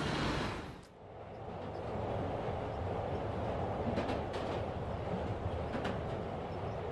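A subway train rumbles steadily along.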